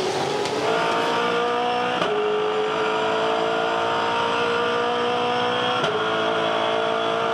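A race car engine roars loudly at high revs, rising in pitch and dropping sharply at each gear change.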